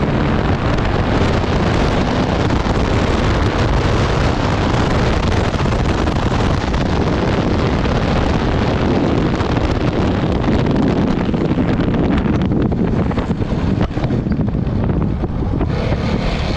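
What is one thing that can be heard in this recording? An off-road vehicle engine roars steadily up close.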